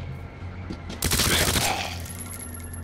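A zombie lets out a loud, rasping growl.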